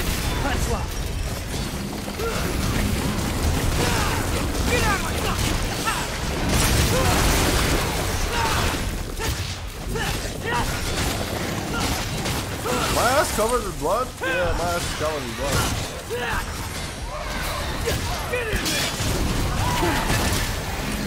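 Heavy blows and slashes strike monsters again and again.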